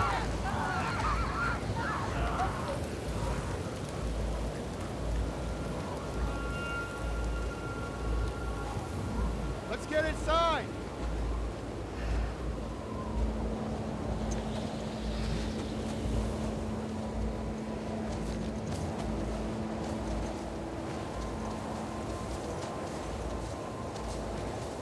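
Wind howls steadily outdoors.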